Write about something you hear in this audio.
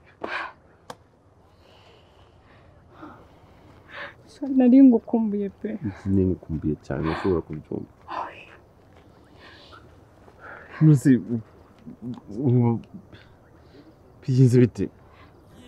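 A man speaks with feeling, close by.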